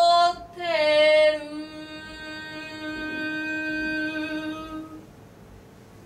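A young woman sings a long held note into a microphone, her voice slowly fading out.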